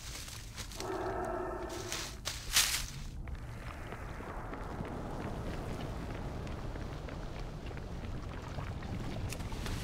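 Footsteps patter quickly over soft ground.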